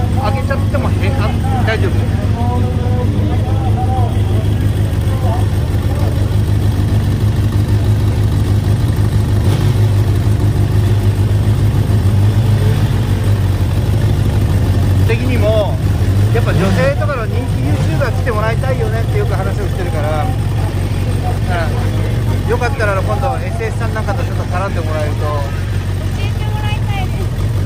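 A racing motorcycle engine idles loudly with a deep, rough rumble.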